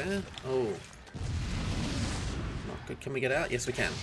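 A magic spell bursts with a rushing whoosh.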